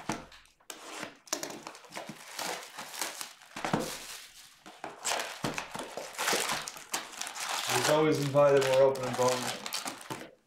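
Foil card packs crinkle and tear open.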